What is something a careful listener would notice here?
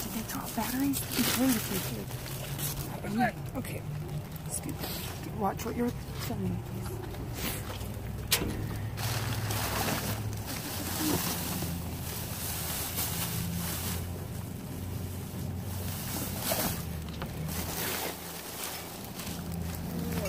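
Plastic bags and wrappers crinkle and rustle as they are handled.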